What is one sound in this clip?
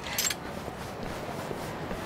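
Several men run past with quick footsteps.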